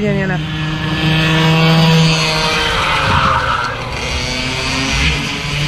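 A go-kart engine hums in the distance.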